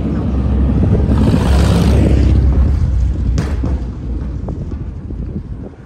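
A car drives along the street nearby.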